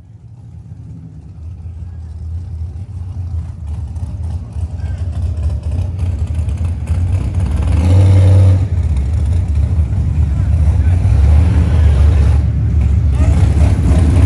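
A car engine idles and then revs with a loud, deep roar close by.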